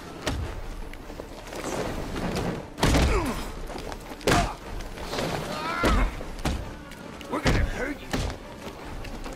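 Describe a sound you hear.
Heavy punches and kicks land with loud thuds.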